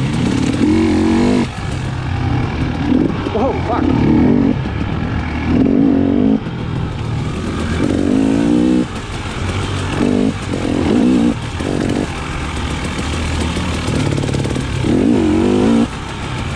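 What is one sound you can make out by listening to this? Tyres crunch over leaves and dirt.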